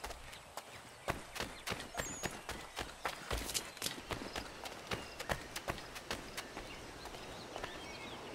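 Quick footsteps crunch over ground and rock.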